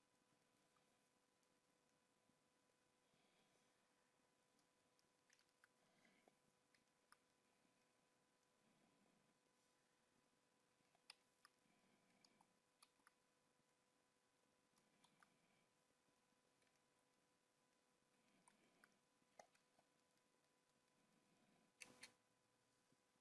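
A man talks quietly and calmly into a microphone.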